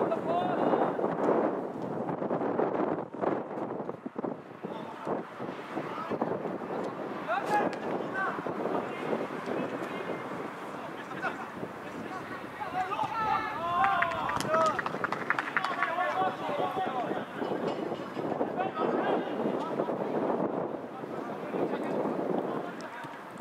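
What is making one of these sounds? Young men shout to each other outdoors, at a distance.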